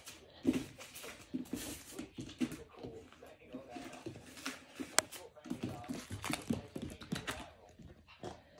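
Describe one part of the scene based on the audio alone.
A puppy's paws patter and scrabble on a hard floor.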